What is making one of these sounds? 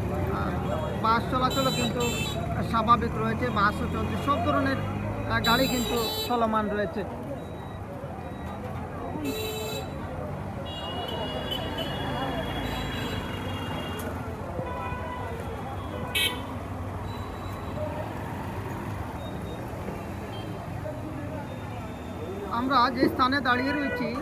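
Traffic hums steadily along a busy street outdoors.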